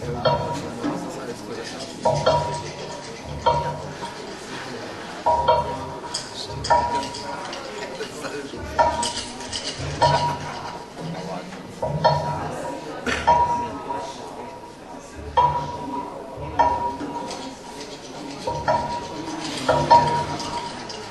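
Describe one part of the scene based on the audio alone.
A keyboard plays electronic tones.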